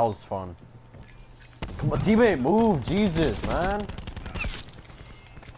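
A gun fires in sharp single shots.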